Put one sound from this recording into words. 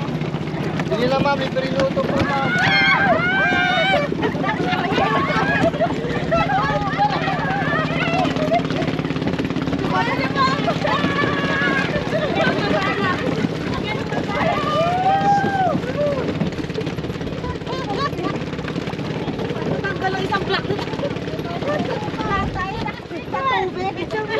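Several men and women chat nearby outdoors.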